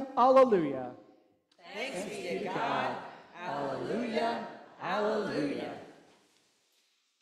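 A congregation sings a short response together in an echoing hall.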